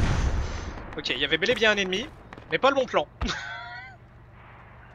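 A young man speaks with animation into a headset microphone.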